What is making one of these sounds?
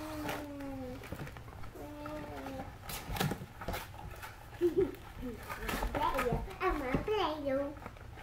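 A cardboard box is handled and set down on a wooden floor.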